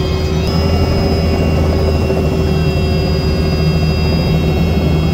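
A car engine idles close by with a steady low hum.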